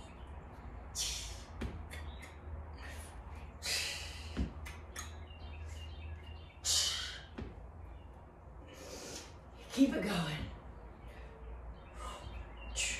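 A woman breathes out hard with effort.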